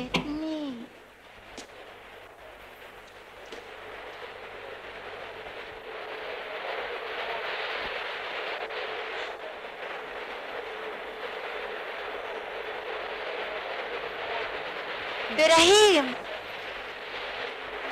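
Water from a shower splashes steadily.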